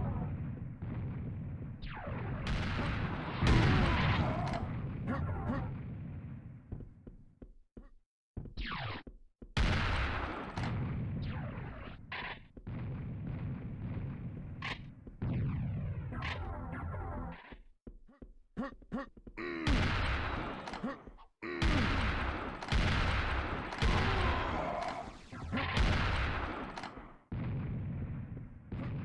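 Guns fire in loud repeated blasts.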